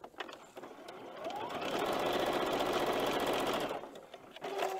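A sewing machine runs with a fast whirring stitch.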